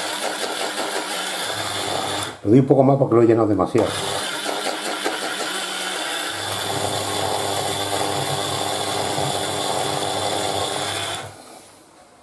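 An electric grinder whirs steadily, then stops.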